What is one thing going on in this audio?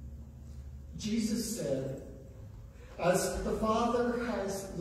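A man speaks close by, in a large echoing room.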